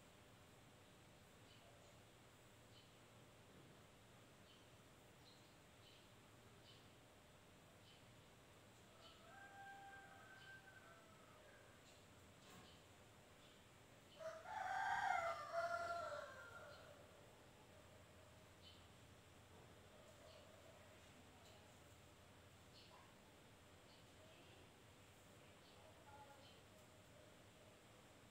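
Fabric rustles softly.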